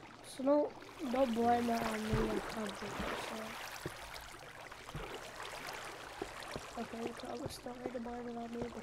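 Water rushes and splashes steadily.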